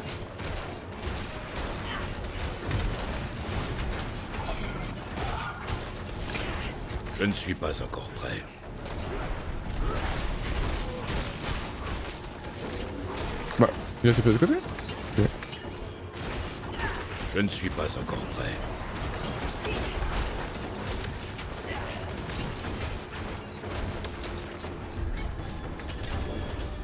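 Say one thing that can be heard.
Game combat effects clash and crackle with bursts of magic.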